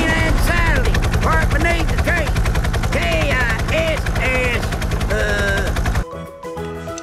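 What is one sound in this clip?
Helicopter rotor blades thump rapidly overhead.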